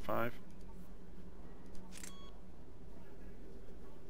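A menu selection beeps with a short electronic click.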